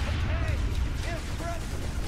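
Energy weapons fire in short bursts.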